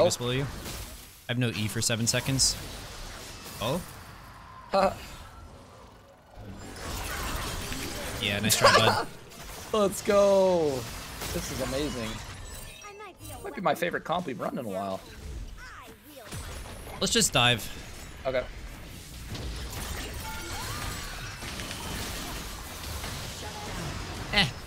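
Game spell effects whoosh and clash.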